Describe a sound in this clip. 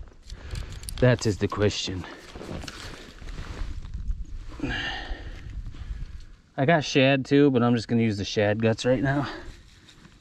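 A man talks casually close by, outdoors.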